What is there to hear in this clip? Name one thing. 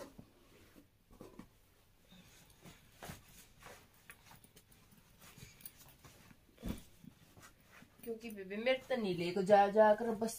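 Fabric and zippers of a backpack rustle and clatter as things are packed into it.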